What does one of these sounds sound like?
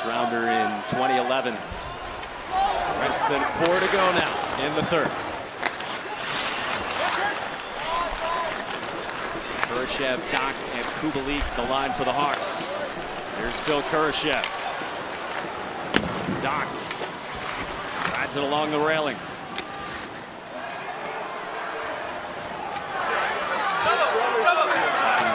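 Sticks clack against a puck.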